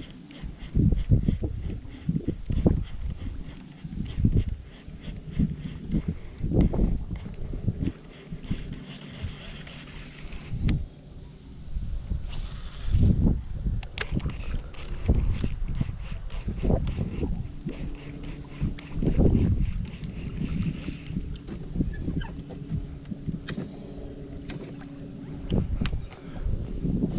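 Wind buffets loudly in gusts outdoors.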